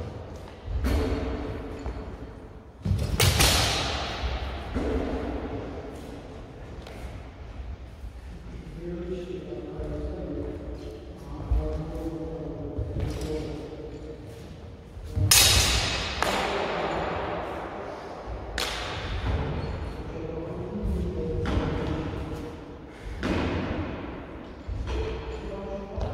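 Blades clash sharply, ringing in an echoing hall.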